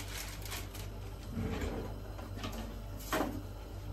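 A drawer slides open.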